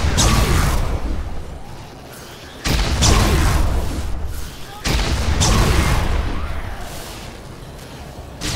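Electric blasts crackle and roar in loud bursts.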